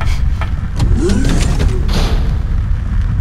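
A heavy metal door slides open with a whoosh.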